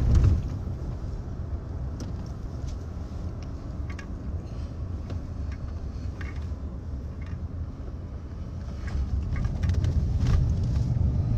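A car rumbles low, heard from inside the cabin.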